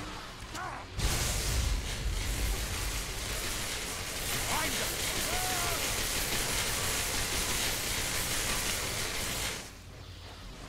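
Magic spells crackle and hiss loudly.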